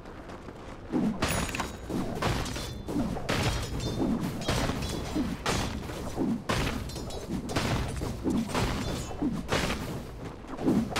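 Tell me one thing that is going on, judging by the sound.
Magic blasts and weapon hits crash again and again in a fight.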